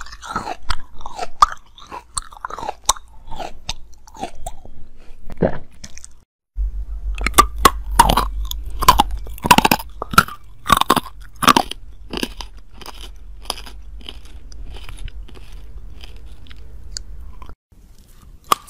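Lips smack and click wetly, very close to a microphone.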